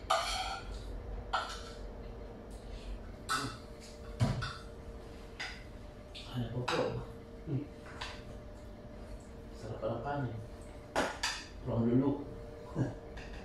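Spoons and chopsticks clink against bowls and plates.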